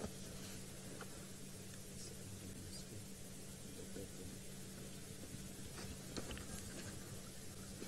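A hyena gnaws and tears at a carcass.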